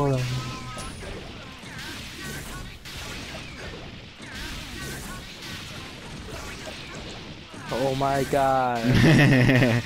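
Punches and strikes land in quick, sharp thuds.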